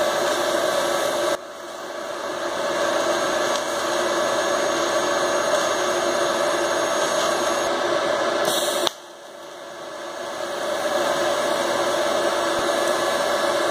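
An arc welder crackles and hisses steadily.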